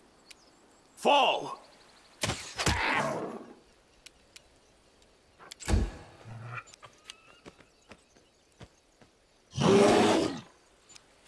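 Magic spells burst with loud whooshing blasts.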